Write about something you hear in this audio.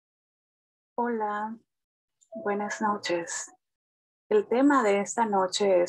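An elderly woman speaks calmly through an online call.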